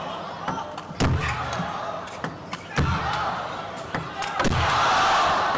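A table tennis ball clicks sharply back and forth on paddles and table.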